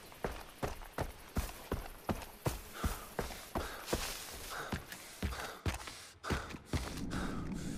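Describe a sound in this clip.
Footsteps crunch steadily over grass and gravel.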